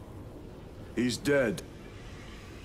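A second man answers briefly in a deep voice.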